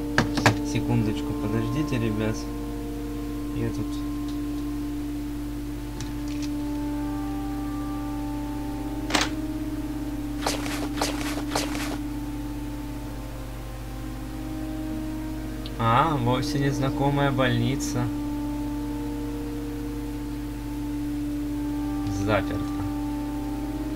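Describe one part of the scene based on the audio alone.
Slow, gentle game music plays steadily.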